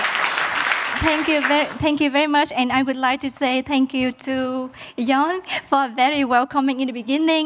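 A young woman speaks animatedly into a microphone.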